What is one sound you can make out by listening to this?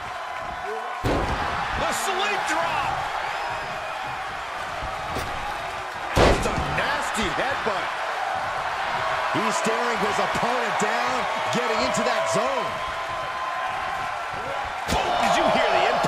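Heavy thuds of bodies slamming onto a wrestling mat.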